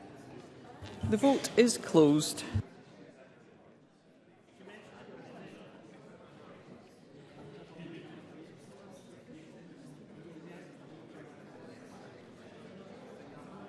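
A middle-aged woman speaks calmly and formally into a microphone.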